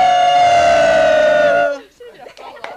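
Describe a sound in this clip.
A group of young women and a man sing a long held note together.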